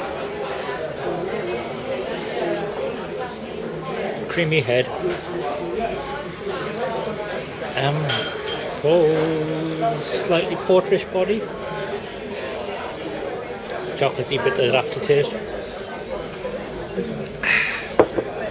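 Many people chatter at once in a busy, echoing room.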